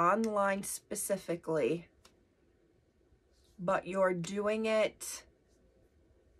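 A woman speaks with animation close to a microphone, in short bursts.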